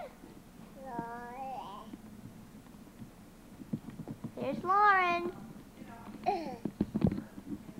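A child calls out in a high, sing-song voice close by.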